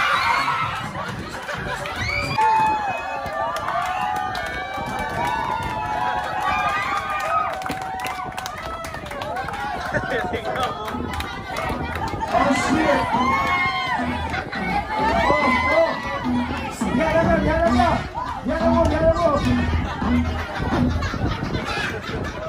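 A lively crowd of young women and men cheers and laughs nearby.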